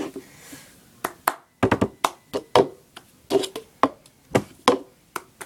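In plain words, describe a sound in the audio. Hands tap and knock on a cup.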